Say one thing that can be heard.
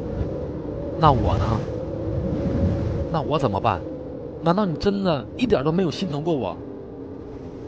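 A young man speaks with emotion, his voice strained, close by.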